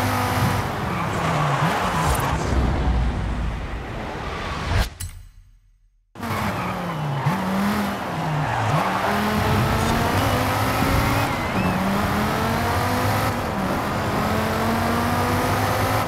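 A sports car engine roars and revs up and down through gear changes.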